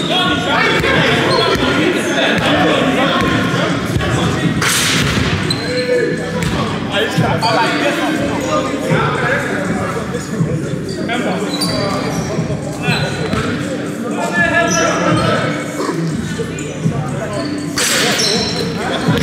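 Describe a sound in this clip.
Men talk and call out across a large echoing hall.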